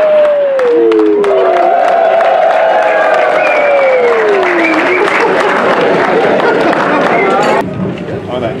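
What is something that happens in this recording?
A group of men clap their hands in lively applause.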